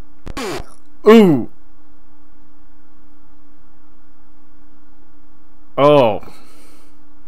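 A video game plays a falling electronic tone.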